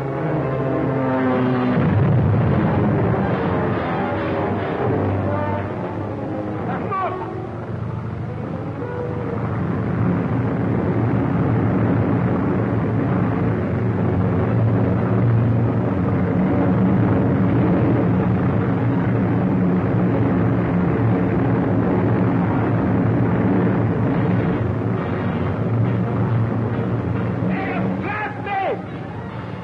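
Propeller plane engines drone steadily.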